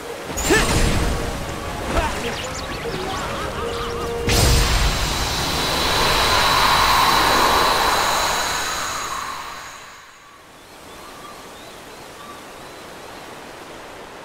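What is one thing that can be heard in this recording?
Water rushes and splashes along a fast stream.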